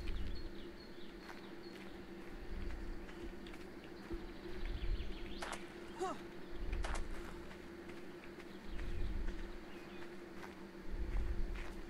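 Footsteps thud softly across grass and rock.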